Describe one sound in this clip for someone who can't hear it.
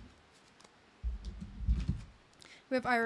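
Cards are set down on a table with soft taps.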